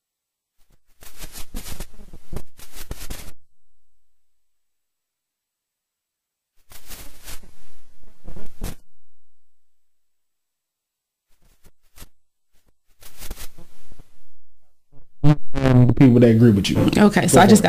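A young man speaks close to the microphone in short bursts.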